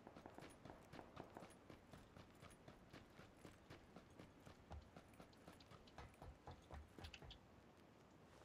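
Footsteps run quickly across a hard surface.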